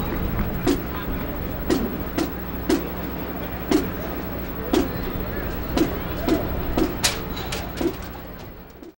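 A marching drum beats a steady, even pulse outdoors.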